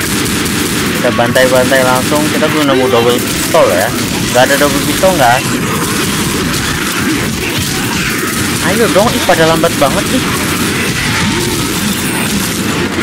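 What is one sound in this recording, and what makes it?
Monsters snarl and growl up close.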